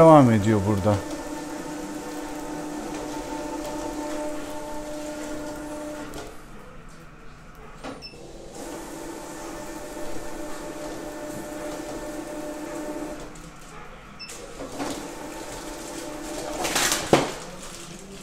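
A motor whirs steadily.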